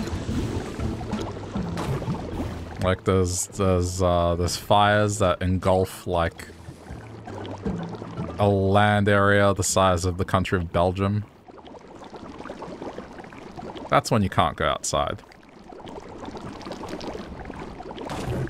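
Thick liquid bubbles and sizzles as something moves through it.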